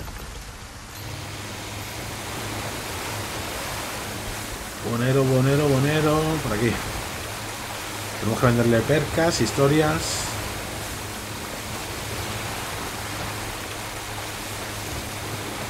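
Water churns and splashes behind a moving boat.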